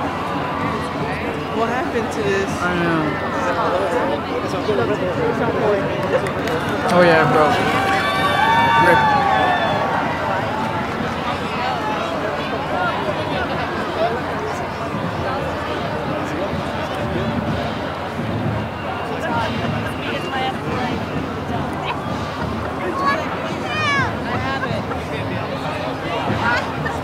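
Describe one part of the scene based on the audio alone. A crowd of men and women chatters close by outdoors.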